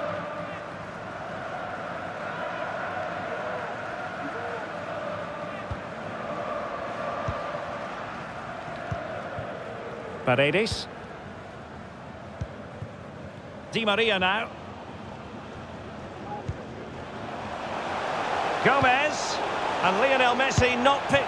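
A large stadium crowd roars steadily.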